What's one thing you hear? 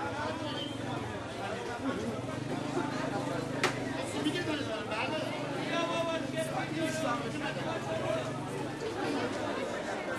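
A crowd of men and women chatters busily all around, outdoors.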